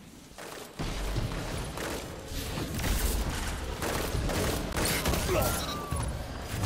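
Guns fire in loud rapid bursts.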